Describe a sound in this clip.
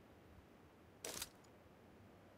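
A rifle fires a short, sharp burst once.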